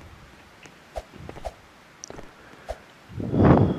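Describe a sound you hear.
Light footsteps tap in a video game.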